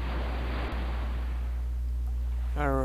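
Water gushes and splashes loudly, then fades.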